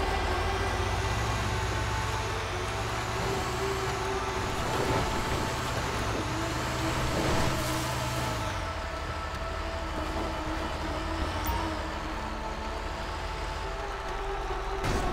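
A heavy truck engine rumbles steadily, its pitch dropping as it slows.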